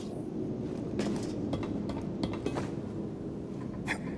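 Footsteps thud on a narrow wooden beam.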